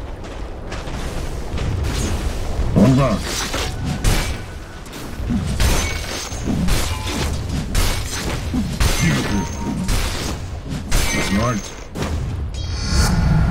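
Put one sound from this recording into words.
Game characters clash in a fight, with sharp hits and spell effects.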